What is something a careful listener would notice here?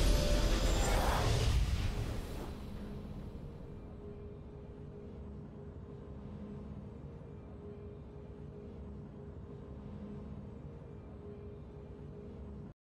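A bright victory fanfare rings out and fades into a soft, steady tune.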